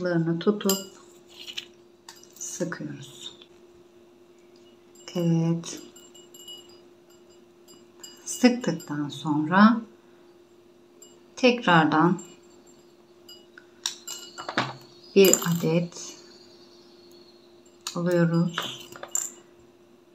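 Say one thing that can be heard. Small glass beads clink against a glass container.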